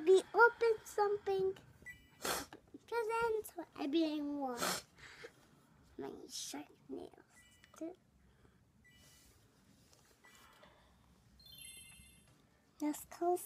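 A child talks with animation, very close by.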